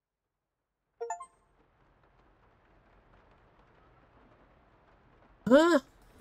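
A man speaks briefly and quietly into a close microphone.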